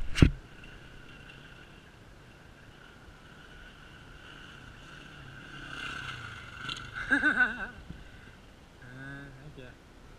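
A motorcycle engine idles steadily close by.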